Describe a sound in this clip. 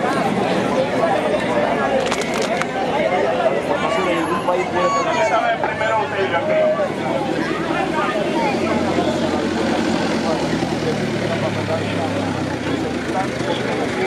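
A crowd of men and women talks and shouts loudly outdoors.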